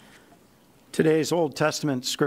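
A man begins speaking clearly into a microphone in a large room.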